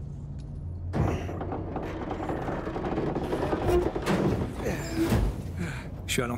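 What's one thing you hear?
Heavy metal doors are forced apart with a grinding scrape.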